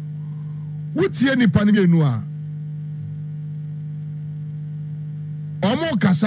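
A young man speaks calmly into a microphone, close by.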